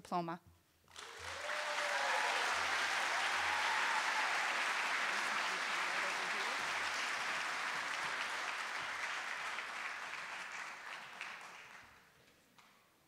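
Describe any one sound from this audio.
A large audience applauds loudly and then fades.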